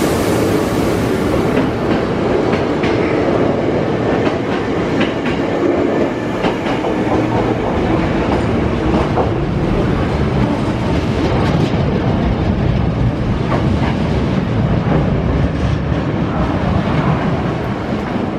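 Train wheels clack rhythmically over the rail joints.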